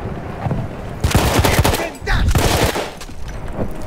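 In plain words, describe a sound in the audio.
A submachine gun fires rapid bursts at close range.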